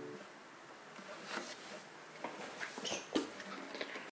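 A guitar body knocks and rattles as it is handled.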